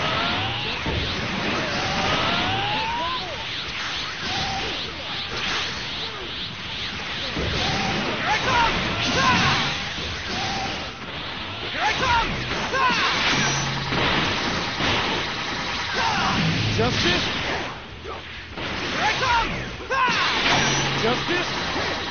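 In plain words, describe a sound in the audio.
Punches and hits land with sharp impacts.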